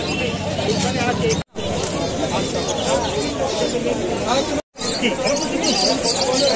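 Many caged parrots and finches chirp and twitter at once.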